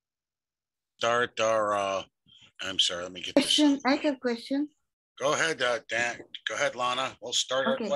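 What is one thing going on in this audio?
A middle-aged man speaks calmly over an online call.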